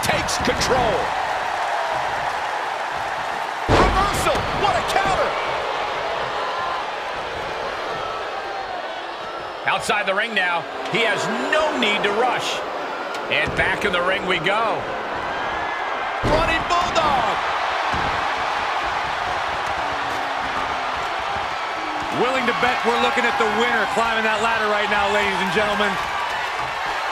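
A large crowd roars and cheers in a big echoing arena.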